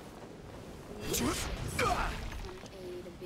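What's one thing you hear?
A whooshing leap swishes through the air.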